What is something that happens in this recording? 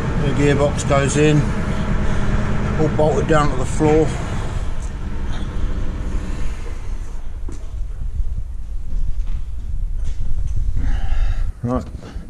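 A diesel engine idles with a steady low rumble.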